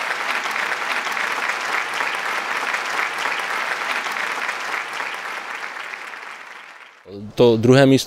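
A crowd applauds, then the clapping fades away.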